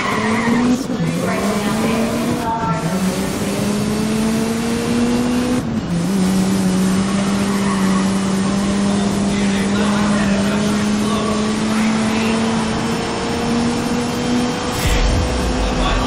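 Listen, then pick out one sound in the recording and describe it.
A racing car engine roars at high revs, dropping briefly with each gear change before climbing again.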